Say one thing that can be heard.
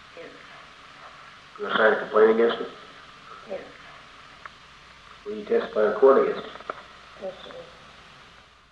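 A young person answers briefly and quietly.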